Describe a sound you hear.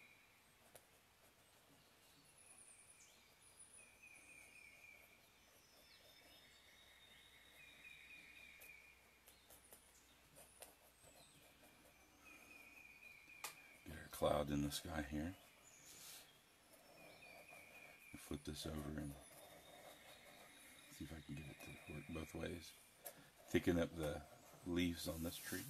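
A crowquill pen scratches on paper.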